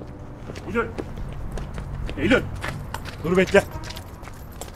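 A young man calls out loudly, close by.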